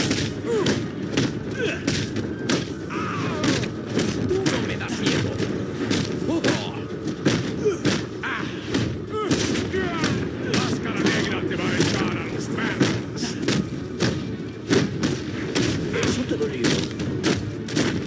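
Punches and kicks land with heavy thuds in a fast brawl.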